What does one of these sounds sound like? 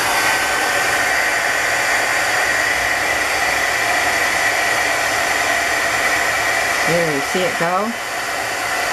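A heat gun blows with a steady, loud whirring hiss.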